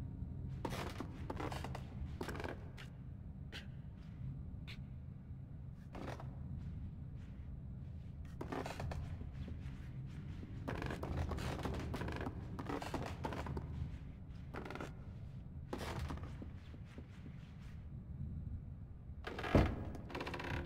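Small footsteps patter on a wooden floor.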